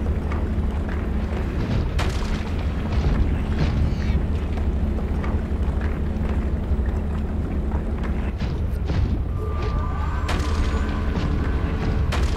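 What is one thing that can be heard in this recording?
A deep, steady underwater engine hum drones throughout.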